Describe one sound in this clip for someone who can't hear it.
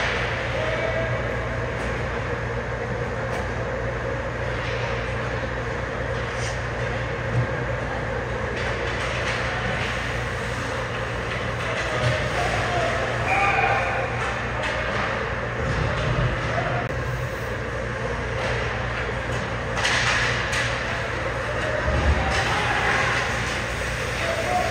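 A steady hum and murmur fills a large echoing rink.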